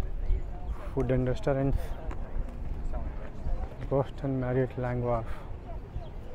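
A man talks briefly nearby as he walks past.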